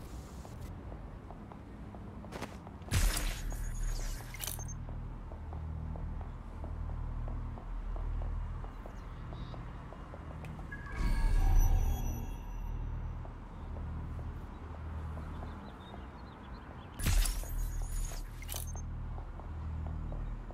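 Footsteps run on pavement.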